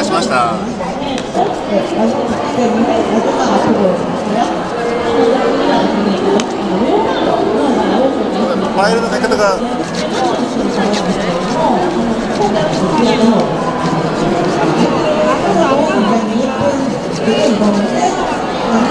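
Many voices chatter in a busy crowded hall.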